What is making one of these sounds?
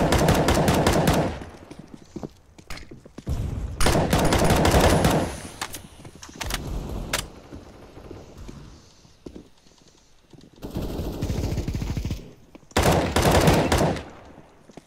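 Rifle gunfire rattles in rapid bursts.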